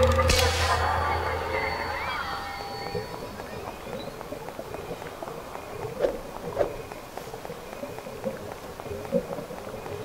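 Footsteps tread steadily on a dirt path.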